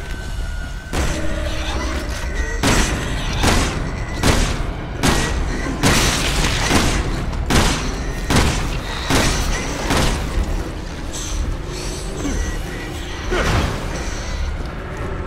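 Heavy footsteps thud on a hard floor.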